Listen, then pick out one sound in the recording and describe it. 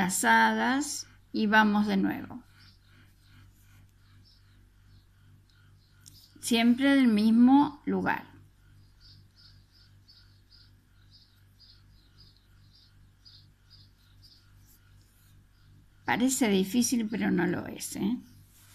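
A crochet hook softly ticks against yarn.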